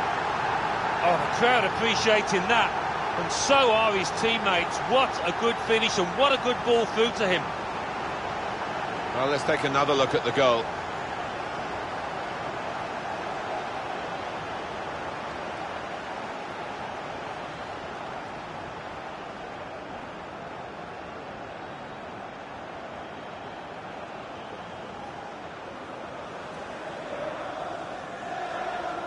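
A stadium crowd roars steadily.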